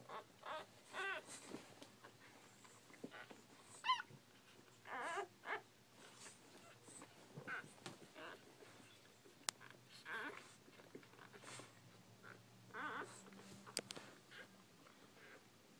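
A mother dog licks her puppies with wet, smacking sounds.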